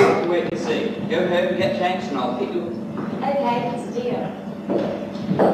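A man speaks clearly on a stage.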